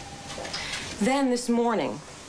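A second woman speaks loudly and with animation, close by.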